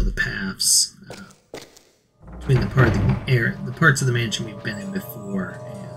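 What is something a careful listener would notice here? Footsteps tread slowly across a wooden floor.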